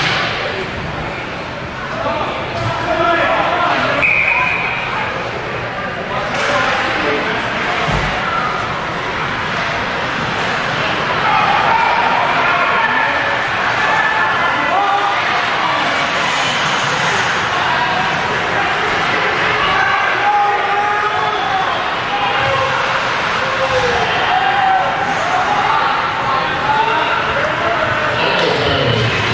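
Skates scrape and swish across the ice.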